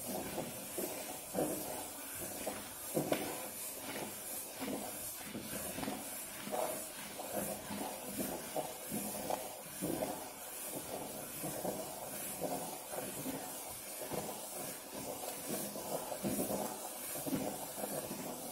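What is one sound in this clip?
Fingers scrape against the side of a metal bowl.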